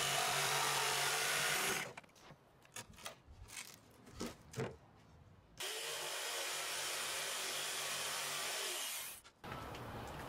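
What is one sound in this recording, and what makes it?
A jigsaw buzzes steadily as it cuts through wood.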